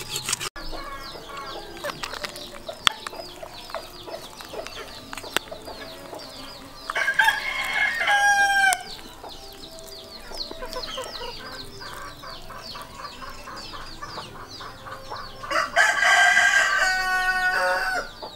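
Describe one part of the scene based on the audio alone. Hands squelch through wet raw chicken.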